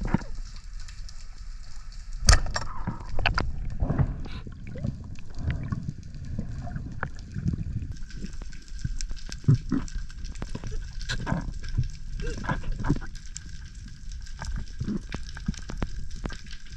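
Water swirls and rumbles in a low, muffled way as a diver swims underwater.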